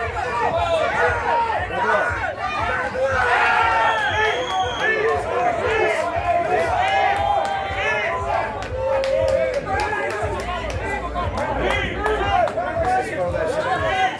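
An outdoor crowd of spectators cheers and shouts.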